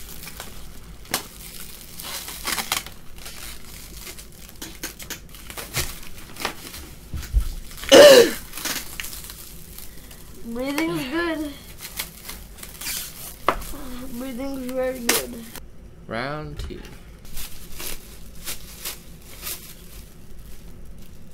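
Plastic wrap crinkles and rustles.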